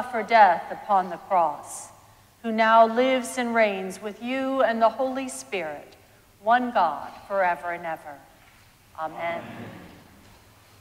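A woman reads aloud calmly in a large echoing hall.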